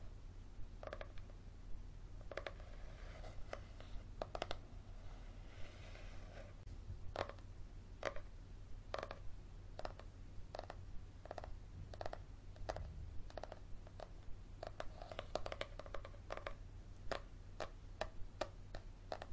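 Fingernails tap on the cover of a paperback book, close up.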